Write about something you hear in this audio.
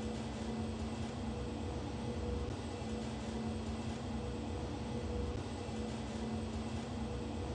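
An elevator car hums steadily as it travels between floors.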